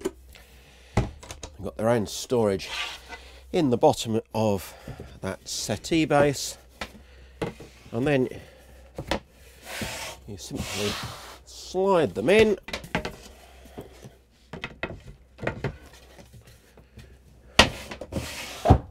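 Wooden boards knock and clatter as they are laid down.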